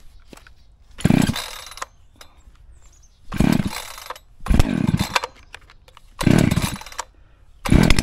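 A chainsaw's starter cord is pulled sharply several times.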